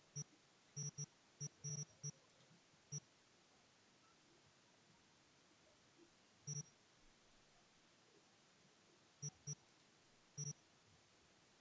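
Short electronic menu blips sound as items are selected.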